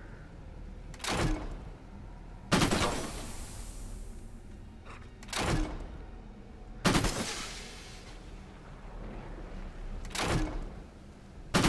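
A heavy gun fires loud booming shots every few seconds.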